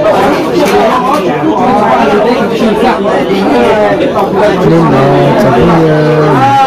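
Several men and women talk over one another nearby.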